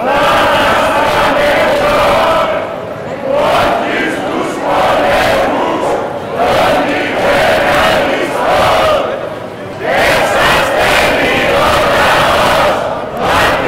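A crowd of men and women chants loudly in unison outdoors, in repeated rhythmic phrases.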